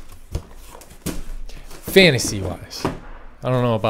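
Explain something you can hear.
A cardboard box slides up off a stack of smaller boxes.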